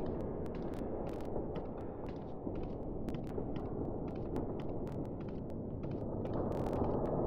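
Footsteps thud steadily on hard stairs.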